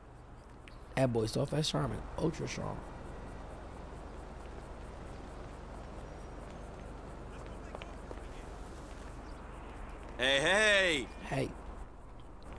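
A young man speaks excitedly into a close microphone.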